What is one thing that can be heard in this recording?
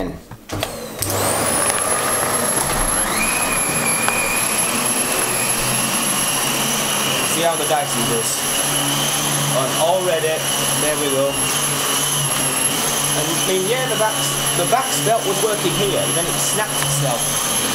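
A vacuum cleaner motor whines loudly and steadily.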